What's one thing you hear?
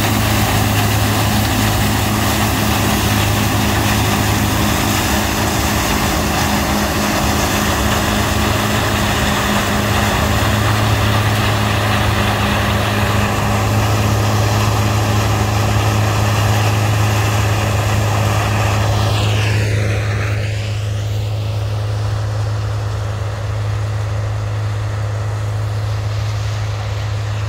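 A combine harvester engine drones under load while harvesting corn.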